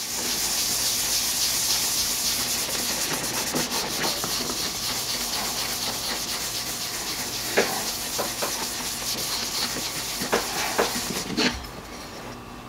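A cloth rubs briskly back and forth over a wooden block.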